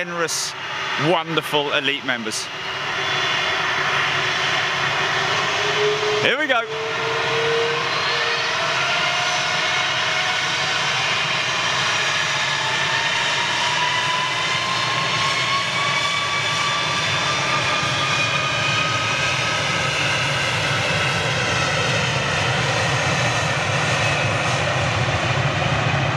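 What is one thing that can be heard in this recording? A jet airliner's engines roar steadily as it starts rolling for takeoff.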